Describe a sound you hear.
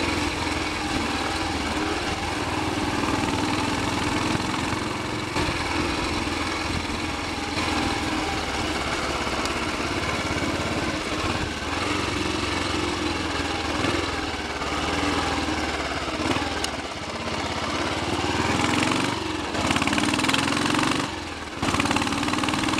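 A single-cylinder Royal Enfield Bullet motorcycle thumps along under way.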